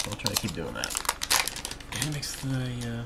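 Plastic card wrappers crinkle and rustle close by.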